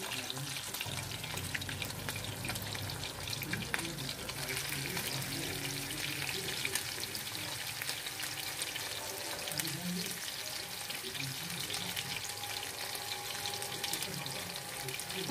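Hot oil sizzles and crackles steadily as food fries.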